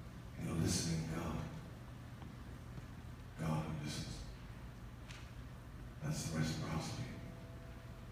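A man speaks into a microphone over loudspeakers in a large echoing hall, in short phrases with pauses.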